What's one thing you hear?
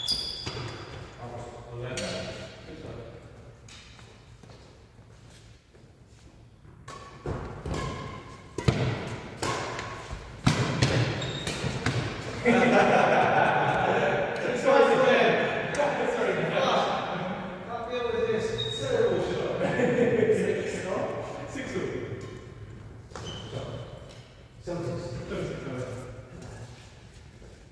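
Rackets strike a shuttlecock with sharp pops in a large echoing hall.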